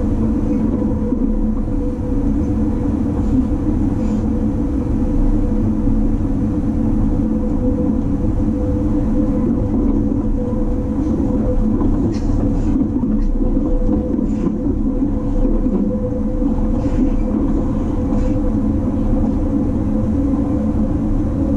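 A train rumbles steadily along the tracks with a low hum.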